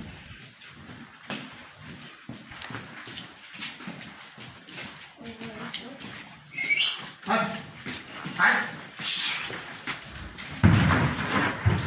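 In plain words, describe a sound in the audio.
Cows low nearby.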